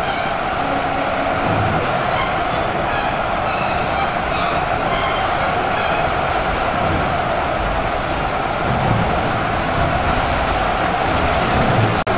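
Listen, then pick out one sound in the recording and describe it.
Many energy blades hum and clash in a dense, constant battle din.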